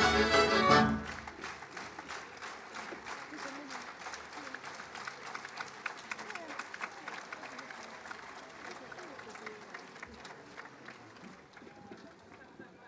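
A large outdoor crowd claps and applauds.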